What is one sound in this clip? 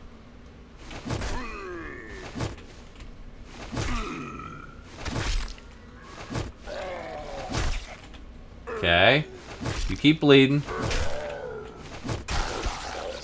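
A club strikes a body with heavy thuds.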